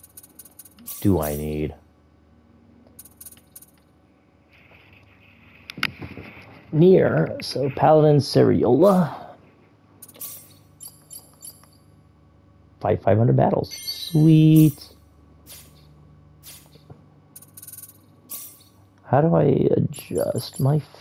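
Short electronic menu blips sound as options are picked.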